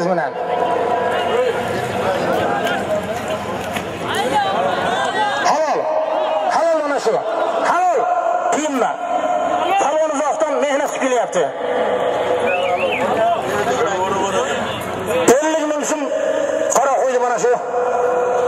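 A large outdoor crowd murmurs and shouts.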